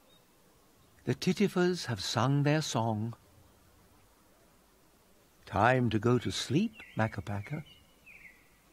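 A cartoon character babbles in a sing-song voice.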